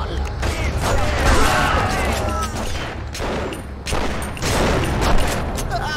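Gunshots ring out in a room.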